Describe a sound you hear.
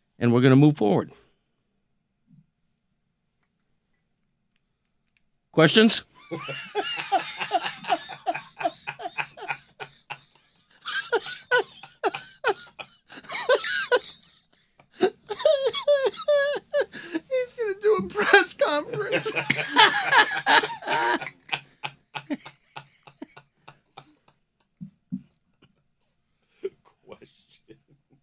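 Several men talk and joke into microphones with animation.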